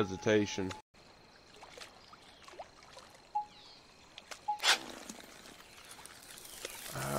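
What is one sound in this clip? A fishing reel clicks as line is reeled in.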